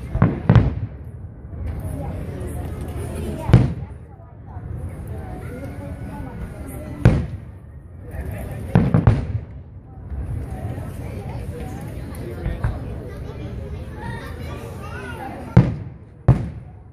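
A crowd chatters and murmurs nearby.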